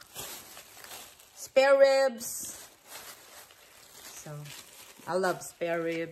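A plastic package crinkles in a hand.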